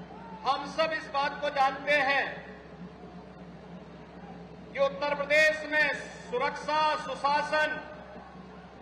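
A man speaks forcefully into a microphone over a loudspeaker.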